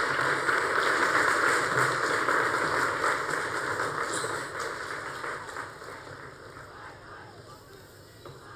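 A large crowd cheers and murmurs loudly, then slowly quiets down.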